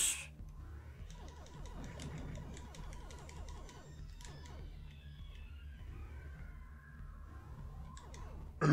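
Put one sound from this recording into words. Retro video game sound effects beep and chirp rapidly.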